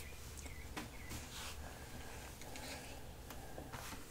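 Glasses rustle faintly as an elderly man puts them on.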